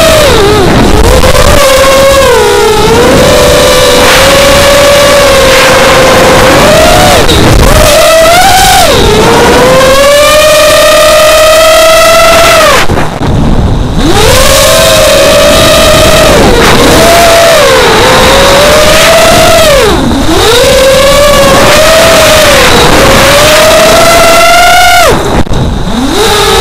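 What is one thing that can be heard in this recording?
A small drone's motors whine loudly and close, rising and falling in pitch as it races and swoops.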